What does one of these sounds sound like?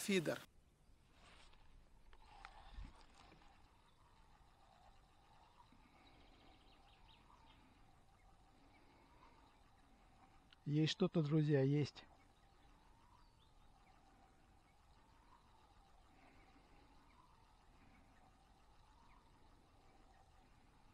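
A fishing reel clicks softly as it is wound.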